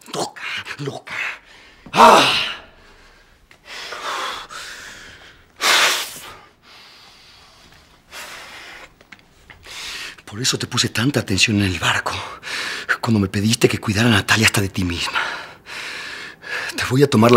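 A man speaks angrily, raising his voice.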